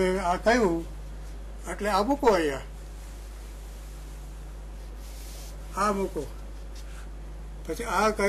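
An elderly man speaks calmly through a microphone, in short phrases.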